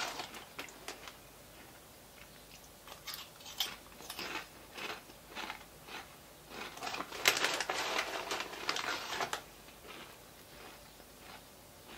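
A snack bag crinkles.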